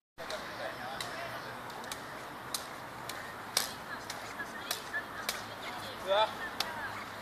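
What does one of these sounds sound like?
Plastic toy swords clack against each other.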